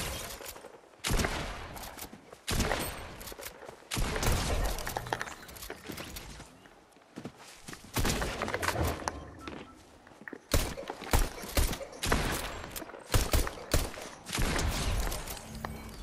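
A pump shotgun fires in sharp blasts.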